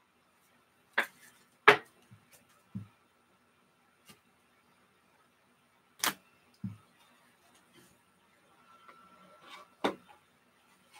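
Plastic card cases click and tap.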